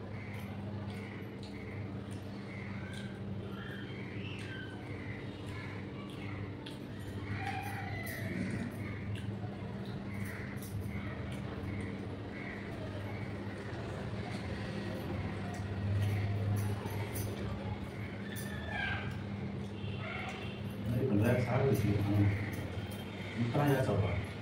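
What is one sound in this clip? Fingers squish and mix soft rice.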